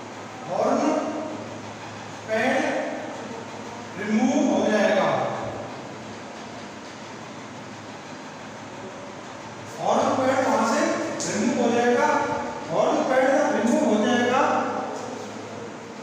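A man speaks calmly, explaining as in a lesson.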